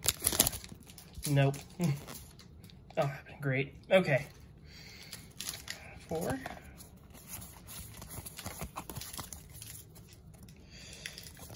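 Cards rustle and slide against each other as they are handled.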